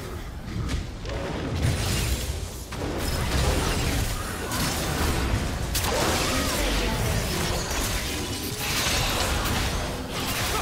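Spell effects whoosh and crash in a fast, busy fight.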